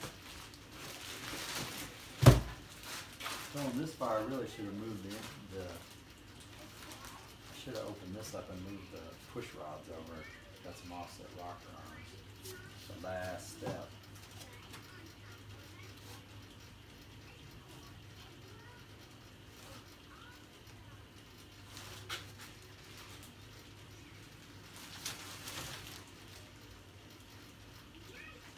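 Plastic crinkles and rustles as a man handles it.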